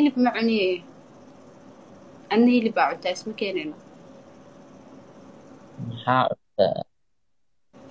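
A young woman talks animatedly over an online call.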